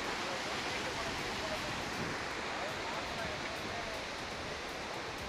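A flooded river rushes and roars loudly.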